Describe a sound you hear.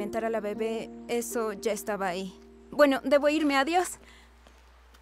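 A young woman speaks anxiously, close by.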